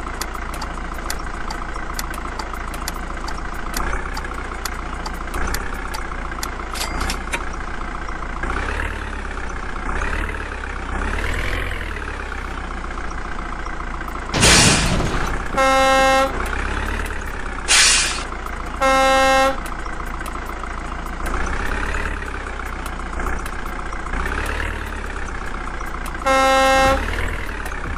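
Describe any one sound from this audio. A truck engine rumbles steadily and revs up and down as it drives.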